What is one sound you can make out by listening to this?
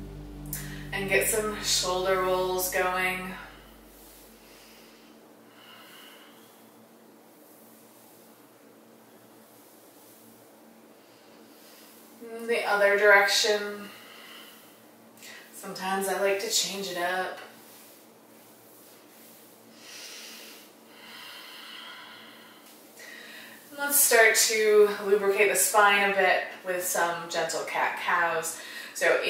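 A woman speaks calmly and slowly, close by.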